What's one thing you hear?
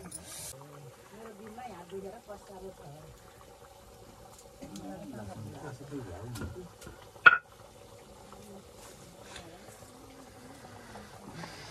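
A wood fire crackles softly.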